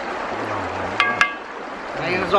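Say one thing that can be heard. A spoon clinks against a metal bowl.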